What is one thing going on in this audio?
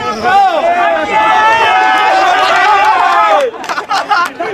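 A group of young men sing and cheer loudly outdoors.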